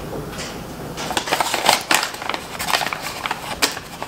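A paper bag rustles and crinkles close by.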